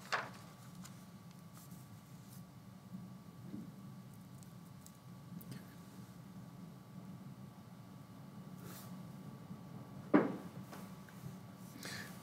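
Paper rustles as it is moved about.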